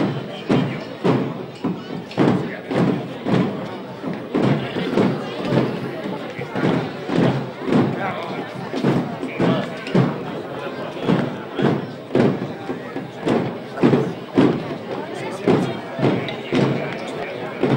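A crowd murmurs quietly outdoors.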